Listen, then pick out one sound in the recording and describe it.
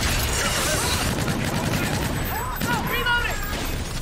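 Rapid gunshots fire in a burst.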